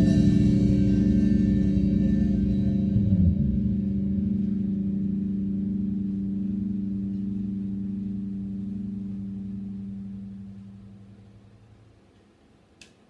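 A bass guitar holds a low, ringing note that fades out.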